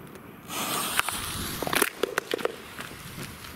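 Sharp pops and crackles burst from the firework.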